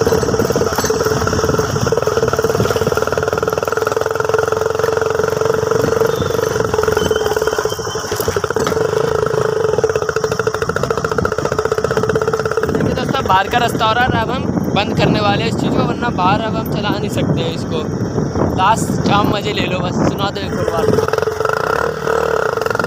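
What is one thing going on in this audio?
A motorcycle engine drones loudly and steadily as the bike rides along.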